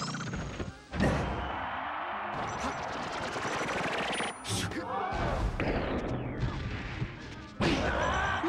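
Fighting game sound effects hit, whoosh and clash rapidly.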